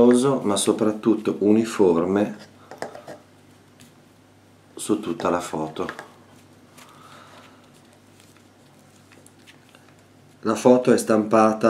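A brush scrapes softly across paper.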